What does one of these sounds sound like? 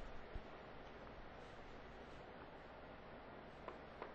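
An eraser rubs briskly across a chalkboard.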